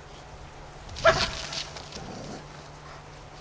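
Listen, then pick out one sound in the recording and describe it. A dog barks loudly close by.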